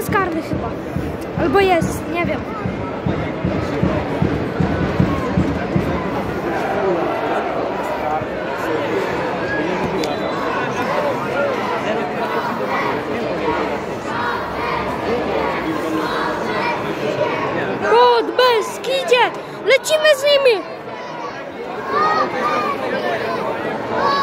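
A crowd murmurs and chatters throughout a large open stadium.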